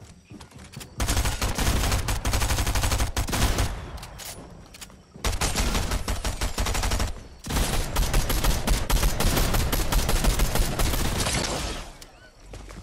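Energy blasts and weapon strikes crackle and crash in rapid bursts.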